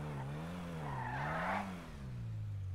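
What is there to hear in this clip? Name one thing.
Tyres screech on concrete as a car spins.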